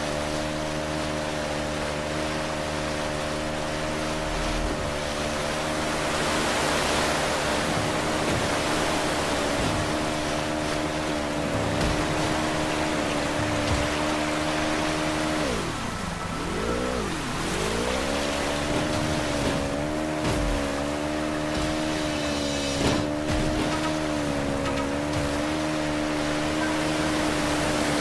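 Water rushes and splashes around a speeding jet ski.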